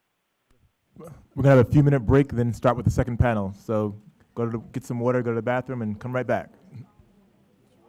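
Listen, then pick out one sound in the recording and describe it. A man speaks calmly through a microphone and loudspeaker.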